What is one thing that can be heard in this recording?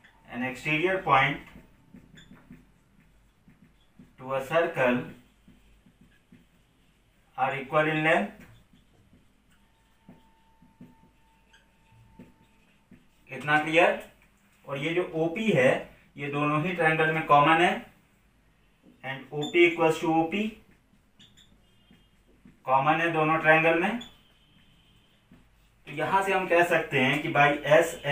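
A man speaks calmly and clearly close by, in short phrases with pauses.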